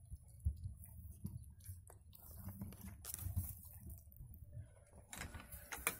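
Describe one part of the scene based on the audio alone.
Dry straw rustles and crackles.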